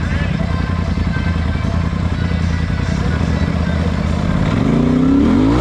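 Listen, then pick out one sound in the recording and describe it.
An engine rumbles steadily up close.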